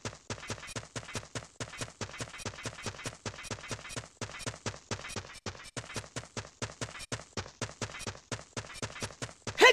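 Footsteps patter quickly and evenly on a hard surface.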